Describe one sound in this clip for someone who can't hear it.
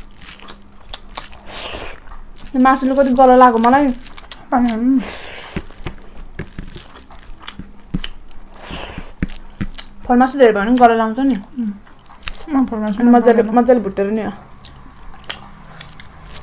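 Food squelches and smacks as someone chews close by.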